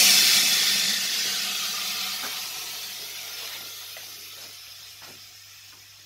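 Air hisses loudly from a machine and slowly fades away.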